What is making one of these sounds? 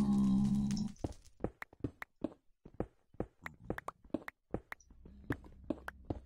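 A pickaxe chips at stone with quick repeated knocks.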